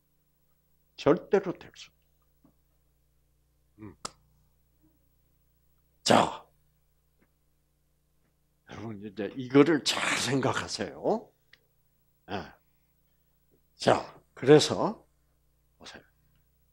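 An elderly man speaks with animation through a headset microphone, in short bursts with pauses.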